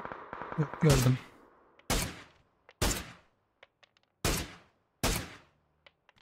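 Rifle shots ring out one at a time, with pauses between them.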